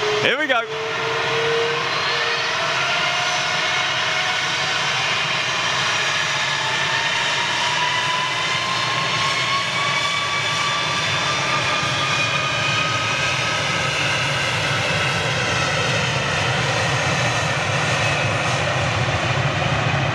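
Jet engines whine with a rising pitch as the airliner speeds up.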